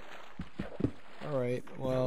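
A pickaxe chips at a stone block with quick taps.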